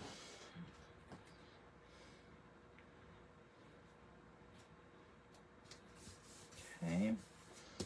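Card paper rustles softly under hands.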